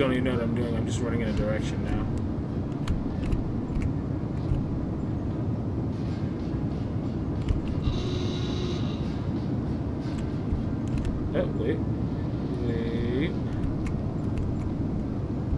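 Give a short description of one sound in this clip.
Heavy machinery rumbles steadily.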